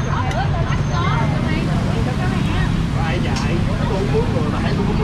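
Men and women chat nearby.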